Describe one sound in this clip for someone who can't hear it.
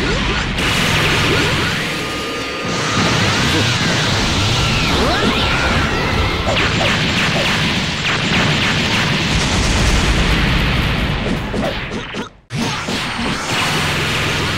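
Blows land with sharp hits and impacts.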